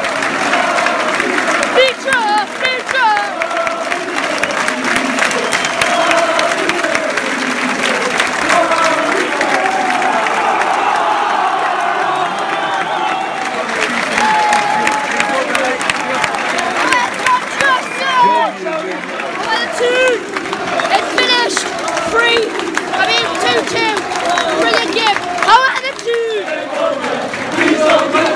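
A large stadium crowd sings and chants loudly, echoing under a roof.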